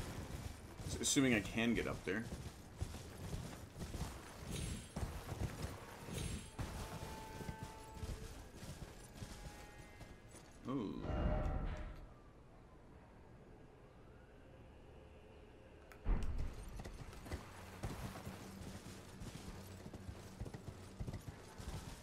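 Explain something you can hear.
A horse's hooves clop over rocky ground.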